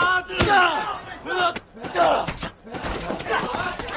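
A body thuds onto the ground.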